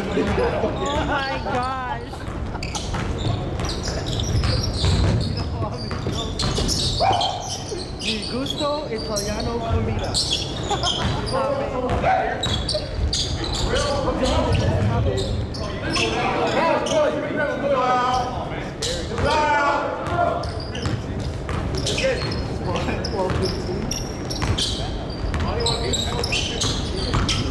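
Men call out to each other across the court.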